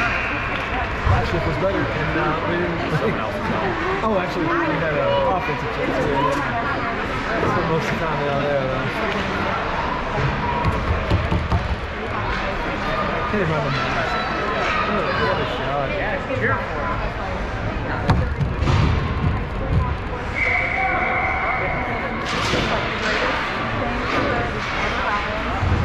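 Skate blades scrape and hiss on ice in a large echoing rink.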